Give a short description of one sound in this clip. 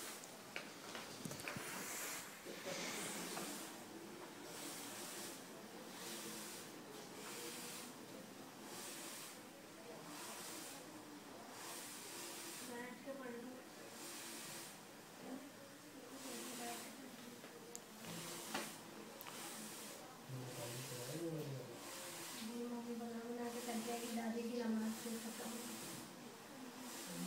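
Oxygen hisses softly through a tube.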